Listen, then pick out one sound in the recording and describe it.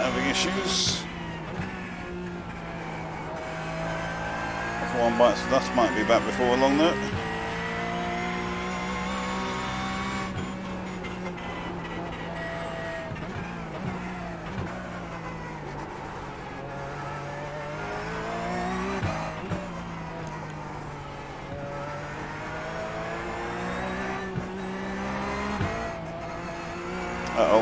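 A race car engine drones and shifts pitch as it speeds up and slows down.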